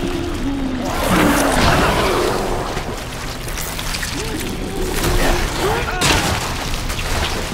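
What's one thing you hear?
A monstrous creature growls and snarls up close.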